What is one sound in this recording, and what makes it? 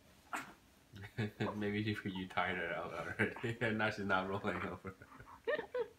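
A young man talks and laughs softly close by.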